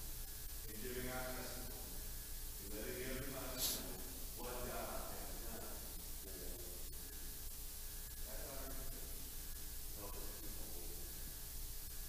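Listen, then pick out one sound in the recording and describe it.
An adult man speaks calmly at a distance in a large echoing hall.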